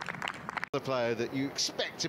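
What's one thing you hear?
A golf club strikes a ball with a sharp crack.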